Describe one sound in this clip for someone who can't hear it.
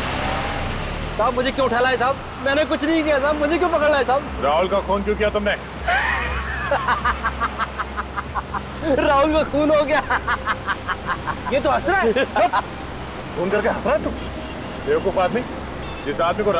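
A middle-aged man talks anxiously close by.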